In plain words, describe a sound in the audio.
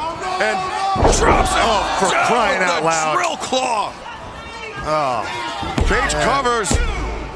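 A body slams down hard onto a wrestling ring mat.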